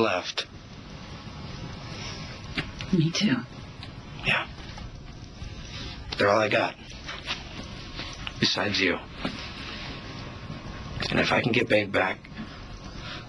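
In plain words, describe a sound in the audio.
A man speaks quietly and earnestly.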